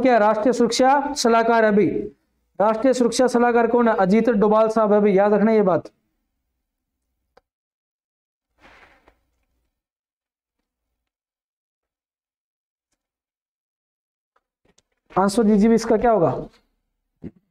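A young man speaks to listeners through a microphone, in a lively lecturing manner, with pauses.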